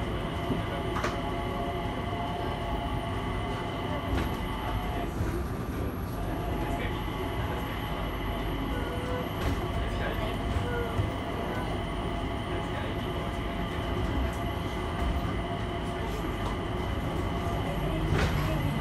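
A train hums and rumbles steadily along the track.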